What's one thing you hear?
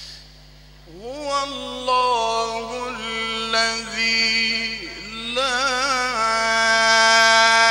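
A second man chants slowly and drawn-out through a microphone.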